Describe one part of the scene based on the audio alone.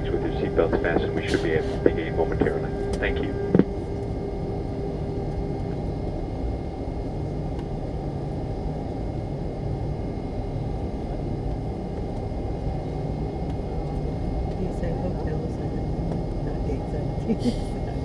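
An airliner's engines rumble steadily as the plane taxis.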